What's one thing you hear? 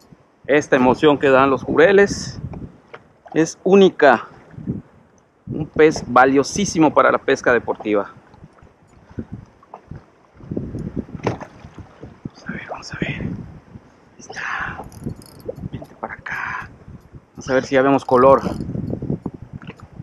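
Water laps against a kayak.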